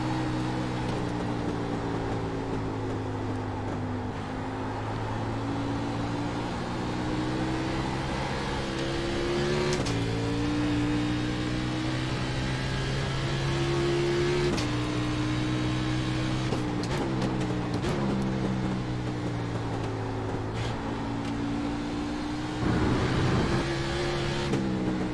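A race car engine roars steadily, its pitch rising through the gears and dropping sharply at each gear change.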